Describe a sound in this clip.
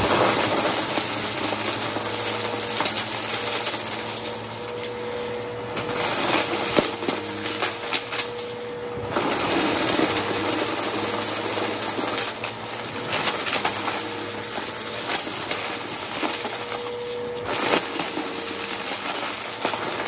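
Debris rattles and crackles as a vacuum cleaner sucks it up.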